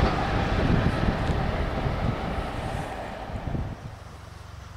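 An electric locomotive rumbles along the rails.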